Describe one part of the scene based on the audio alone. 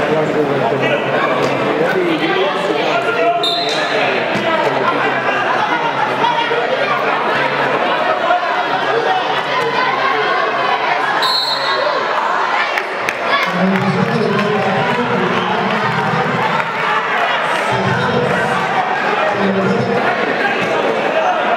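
A large indoor crowd murmurs and cheers, echoing around the hall.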